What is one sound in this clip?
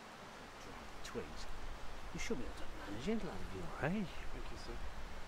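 A man speaks calmly nearby outdoors.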